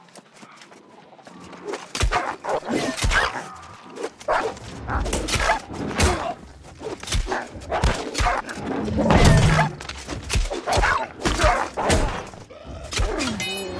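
A wolf snarls and growls.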